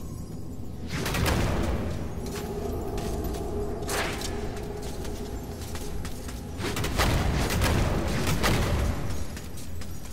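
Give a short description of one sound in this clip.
A burst of dust whooshes loudly.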